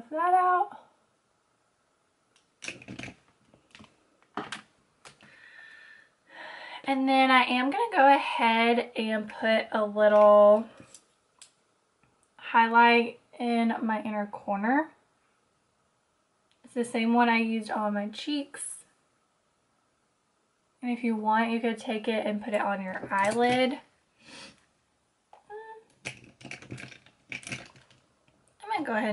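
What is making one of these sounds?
A young woman talks calmly and closely into a microphone, in short bursts with pauses.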